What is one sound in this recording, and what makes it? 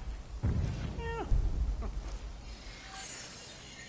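A large beast growls with a deep rumble.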